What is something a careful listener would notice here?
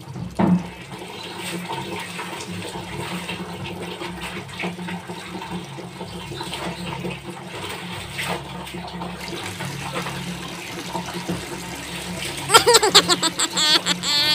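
Water splashes and drips as a cloth is scrubbed and wrung out in a bucket.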